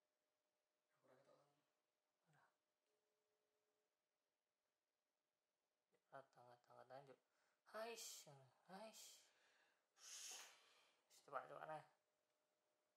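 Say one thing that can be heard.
A young man talks quietly on a phone nearby.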